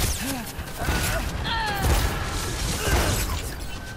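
Explosions and gunfire crackle and boom around.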